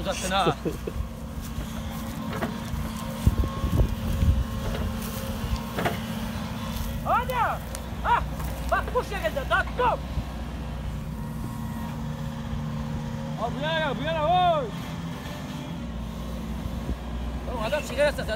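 An excavator engine rumbles steadily outdoors.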